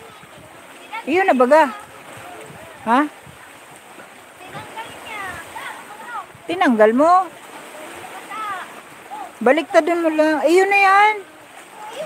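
Children shout and laugh nearby.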